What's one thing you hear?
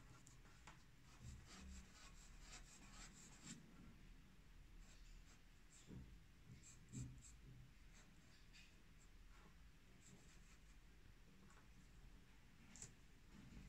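A pen nib scratches lightly on paper.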